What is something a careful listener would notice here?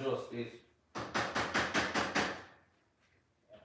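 A spatula scrapes and taps a pan.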